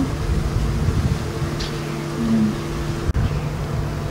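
A lid is set down on a wooden hive box with a soft knock.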